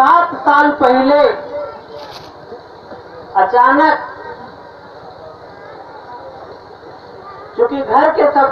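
A man sings loudly into a microphone, heard through a loudspeaker, in short phrases.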